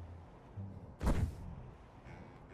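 A heavy whooshing burst sounds.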